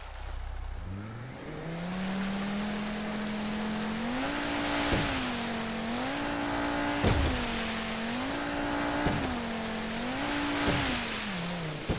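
A motorboat engine roars and revs up and down.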